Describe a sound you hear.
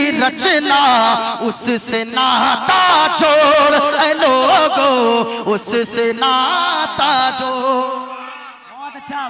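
A man chants loudly and with feeling into a microphone, heard through loudspeakers.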